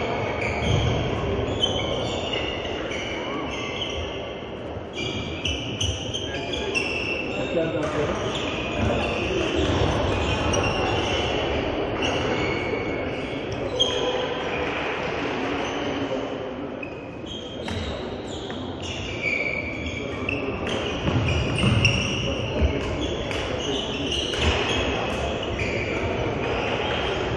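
Badminton rackets strike a shuttlecock in a large echoing hall.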